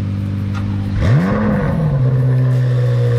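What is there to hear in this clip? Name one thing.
A sports car engine revs sharply once and settles back to idle.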